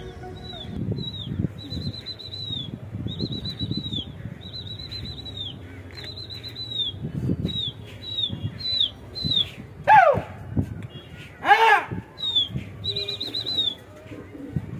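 A flock of birds chirps and whistles high overhead.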